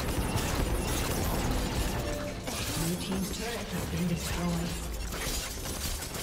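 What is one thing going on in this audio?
Weapons clash and strike repeatedly in a game battle.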